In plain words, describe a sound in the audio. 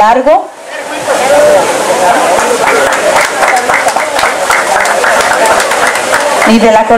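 A crowd applauds and claps.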